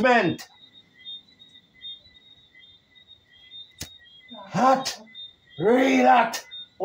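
A man calls out loudly close by in short, drawn-out bursts.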